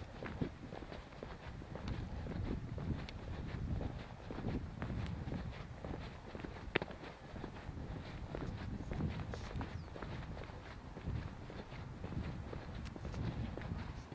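Wind buffets a microphone outdoors with low rumbling gusts.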